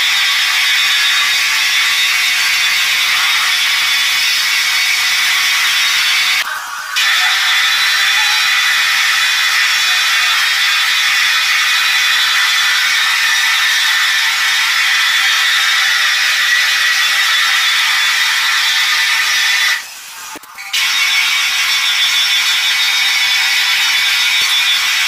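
A floor polishing machine whirs and hums steadily.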